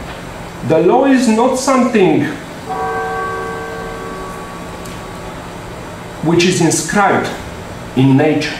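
A man speaks with animation into a microphone in a room with some echo.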